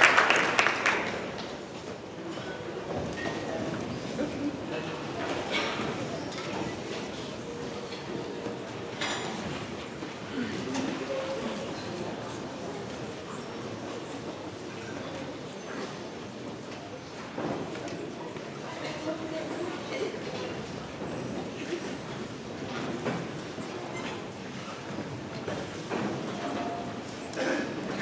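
A big band plays music in a large echoing hall.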